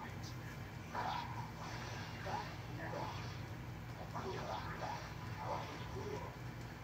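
Sword clashes and fighting noises play faintly from a television speaker.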